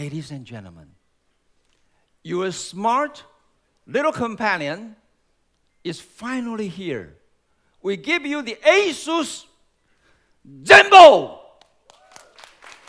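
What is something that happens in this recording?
A man speaks calmly through a microphone in a large hall, in short phrases.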